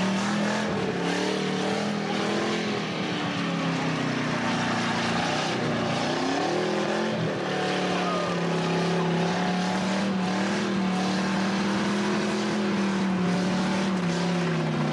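A car engine roars loudly at high revs, rising and falling.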